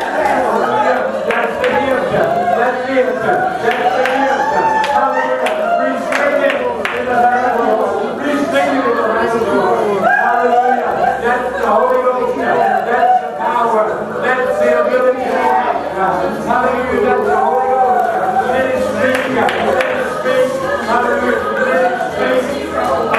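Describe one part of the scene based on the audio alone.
A group of men and women sing together nearby.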